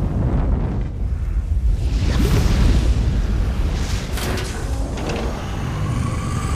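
A deep, steady rumble rolls through a large echoing space.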